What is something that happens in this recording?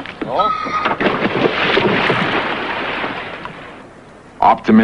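Water splashes and churns as divers plunge in.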